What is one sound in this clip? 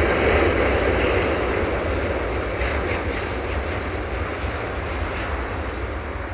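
Wagon wheels clatter rhythmically over rail joints.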